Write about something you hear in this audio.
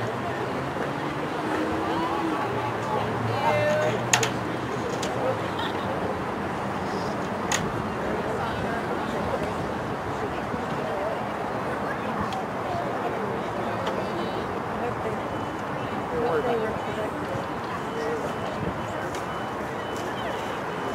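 Young women call out to each other from far off.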